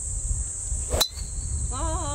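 A golf driver strikes a ball with a sharp crack.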